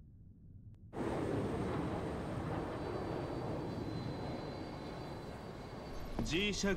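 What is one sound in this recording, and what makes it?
A jet aircraft roars steadily as it flies.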